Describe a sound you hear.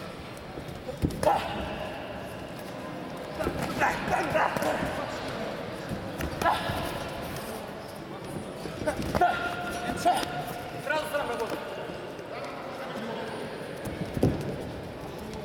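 Boxing gloves thud against bodies in a large echoing hall.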